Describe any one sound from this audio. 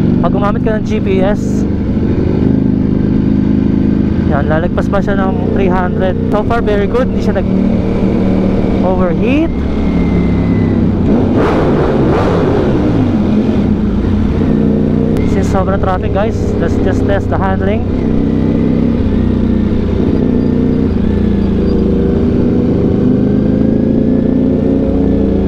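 A motorcycle engine hums loudly and steadily close by.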